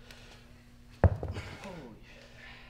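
A heavy weight thuds onto a hard floor with a short echo.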